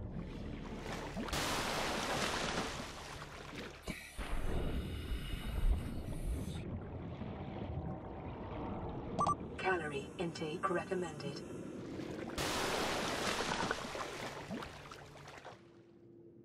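Water splashes and rushes as a swimmer breaks the surface.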